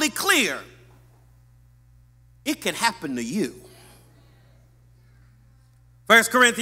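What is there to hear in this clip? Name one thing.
A middle-aged man preaches emphatically into a microphone, in a reverberant hall.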